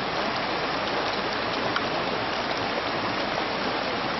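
Water splashes as a man wades through a stream.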